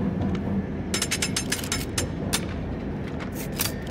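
Metal clicks and clatters as a heavy gun is picked up and handled.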